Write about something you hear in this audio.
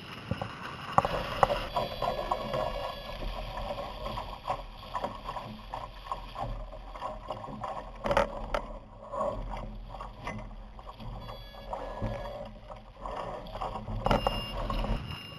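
Wind blows steadily over open water.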